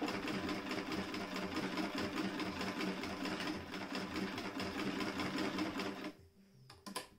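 A sewing machine runs with a fast, steady rattle, then stops.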